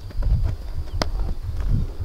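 A baseball smacks into a leather glove.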